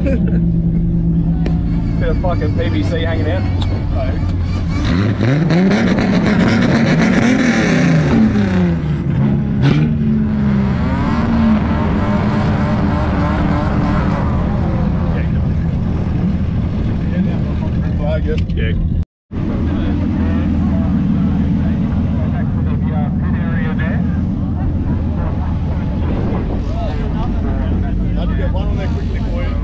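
A modified car engine rumbles at low revs.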